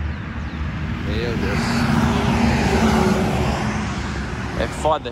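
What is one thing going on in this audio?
A heavy truck rumbles past on a nearby road.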